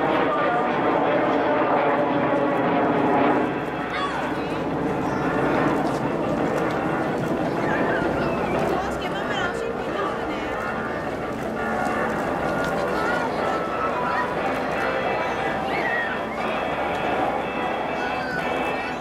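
A jet aircraft roars steadily overhead.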